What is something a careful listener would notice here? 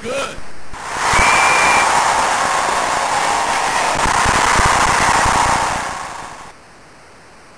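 A stadium crowd cheers loudly, then the cheering fades away.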